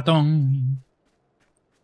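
A young man speaks loudly into a close microphone.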